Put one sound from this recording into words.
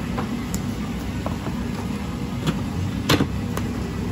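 A plastic tub is set down on a plastic cutting board.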